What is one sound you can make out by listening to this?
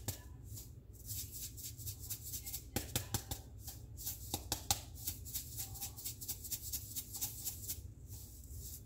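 A pepper grinder grinds in quick bursts.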